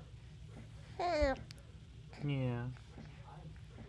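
A baby coos and squeals close by.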